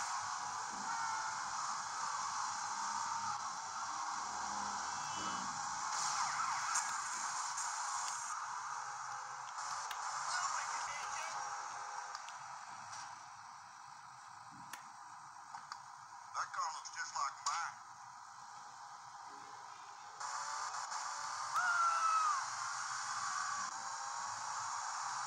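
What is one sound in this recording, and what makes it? A handheld game console plays game sounds through a small tinny speaker.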